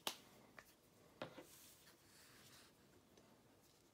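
A small plastic pot is set down on a hard surface with a light knock.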